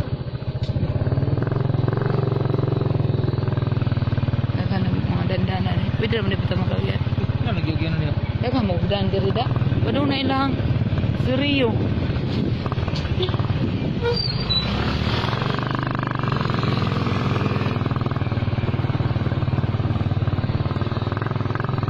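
A motorcycle engine runs as the bike rides along slowly.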